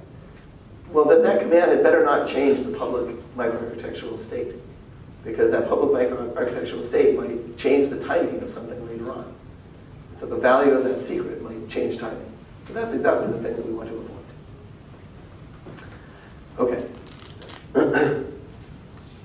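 A man lectures calmly into a microphone.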